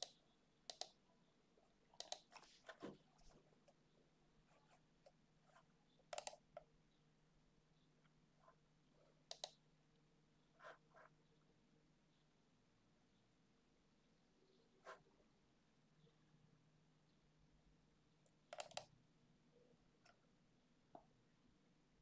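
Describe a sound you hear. A computer mouse clicks sharply now and then.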